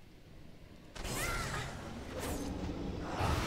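Magic spells whoosh and crackle as a monster is struck.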